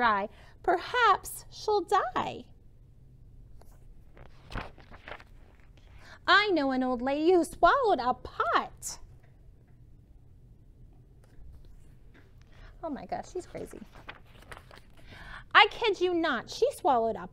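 A woman reads aloud expressively, close by.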